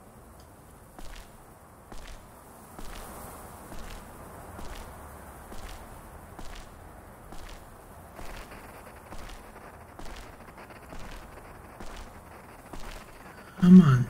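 Slow footsteps thud steadily on a hard floor.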